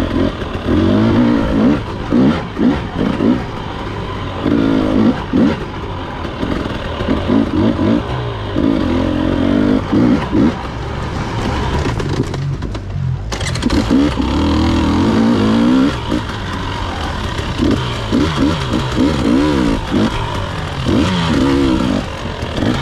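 Tyres crunch over a dirt trail.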